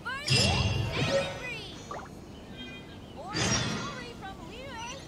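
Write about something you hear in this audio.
Bright game chimes ring out with a sparkling shimmer.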